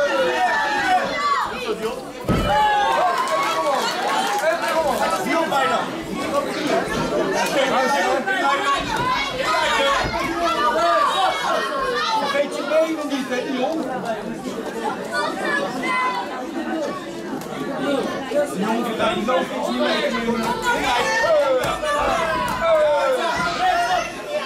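A crowd chatters and cheers in an echoing hall.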